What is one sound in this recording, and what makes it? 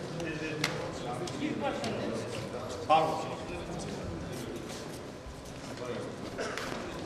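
A crowd of men chatter and call out nearby.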